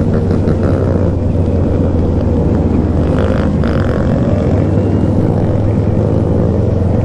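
Many motorcycle engines roar nearby.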